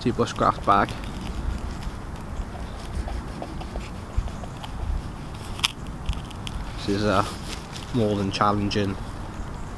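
A knife scrapes and shaves wood.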